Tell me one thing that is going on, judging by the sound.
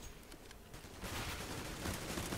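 A smoke grenade hisses steadily.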